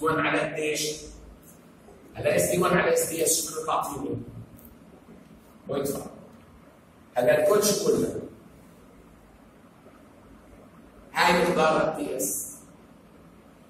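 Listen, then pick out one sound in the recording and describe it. An elderly man lectures in bursts with animation, close by.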